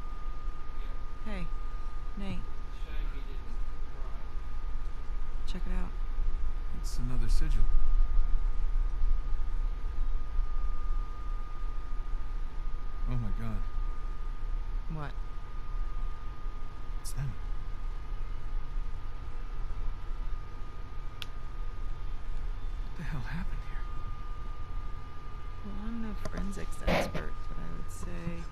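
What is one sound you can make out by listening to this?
A young woman speaks quietly and with concern.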